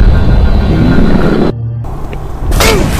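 A monster snarls and growls.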